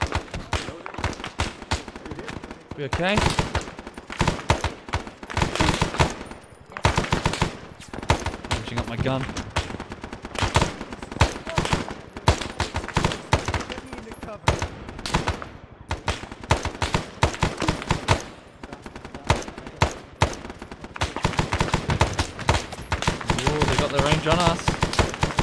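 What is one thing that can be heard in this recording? Rapid gunfire crackles in bursts nearby and far off.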